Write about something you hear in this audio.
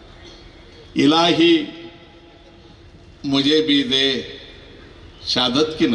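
An elderly man speaks loudly and with animation into a microphone over a loudspeaker.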